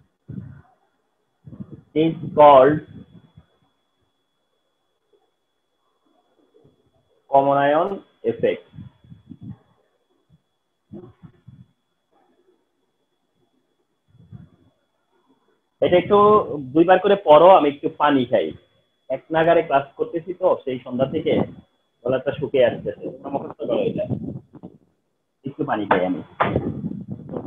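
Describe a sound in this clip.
A man speaks calmly and clearly through a close microphone.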